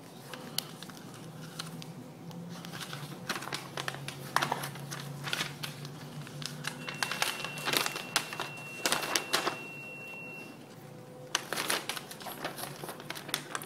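A man's hands brush and tap together.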